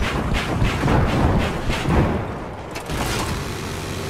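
A rotary cannon fires.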